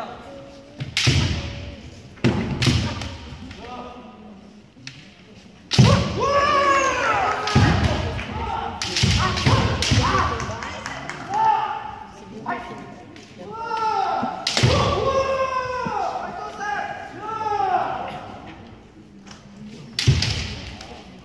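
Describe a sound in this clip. Bamboo swords strike with sharp cracks in a large echoing hall.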